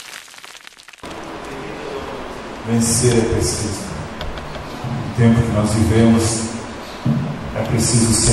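An electric bass guitar plays along.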